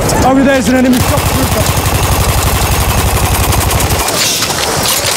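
A heavy machine gun fires a rapid, steady burst close by.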